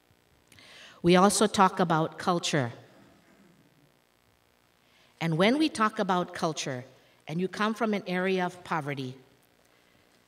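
A woman speaks into a microphone, heard through loudspeakers in a large hall, in short phrases with pauses.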